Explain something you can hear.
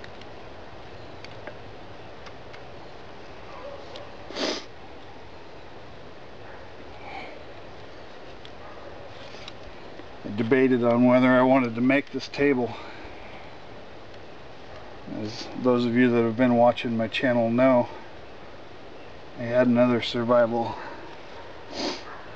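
Wooden sticks clack as a hand taps along them.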